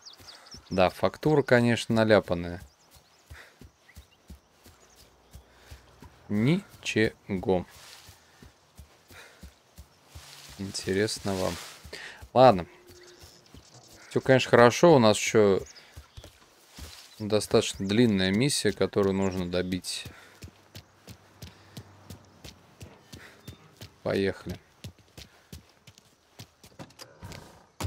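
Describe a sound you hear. Quick footsteps run over grass and pavement.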